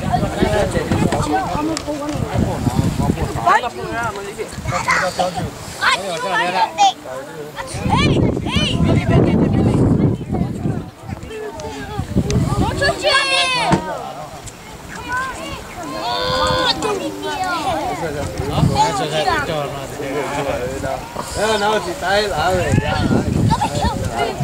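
Several men and women talk and chatter nearby outdoors.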